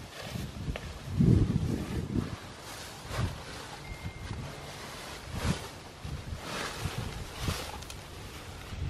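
Nylon fabric rustles as a hammock is handled.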